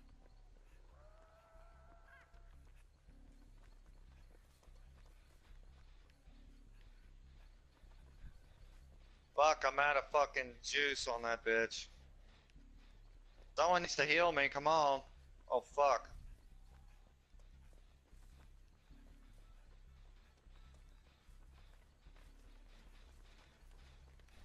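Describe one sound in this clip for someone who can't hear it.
Footsteps run quickly over rough ground.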